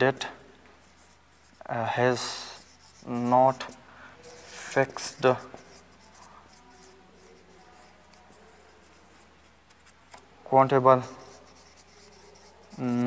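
A man speaks in short bursts, explaining calmly.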